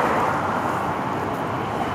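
Gravel crunches and scrapes.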